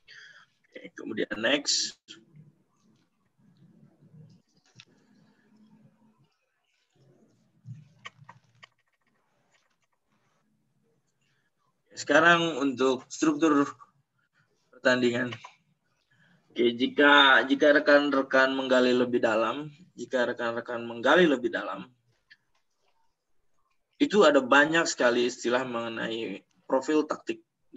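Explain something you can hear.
A young man talks calmly over an online call, with long pauses.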